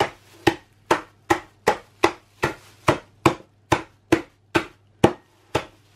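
A wooden rolling pin bangs again and again on a bag of biscuits, crunching them.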